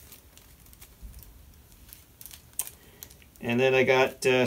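A plastic wrapper crinkles in a man's hands.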